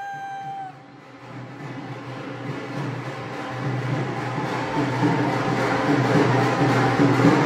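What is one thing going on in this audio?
A drum beats at a lively gathering.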